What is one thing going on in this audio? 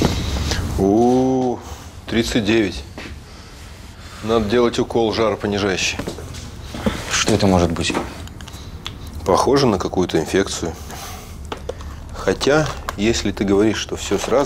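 A middle-aged man speaks calmly in a low voice.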